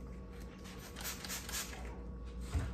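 A spray bottle hisses as it sprays.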